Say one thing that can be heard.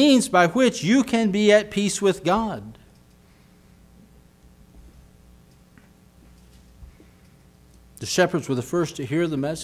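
A middle-aged man speaks with animation into a microphone, with pauses.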